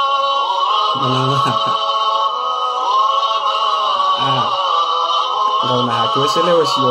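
A man speaks cheerfully close to a microphone.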